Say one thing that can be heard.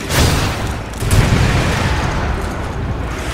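A rocket launcher fires with a loud booming blast.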